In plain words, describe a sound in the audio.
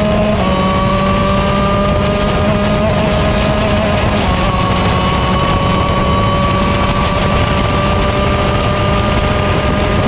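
A kart engine buzzes loudly close by at a high, steady pitch.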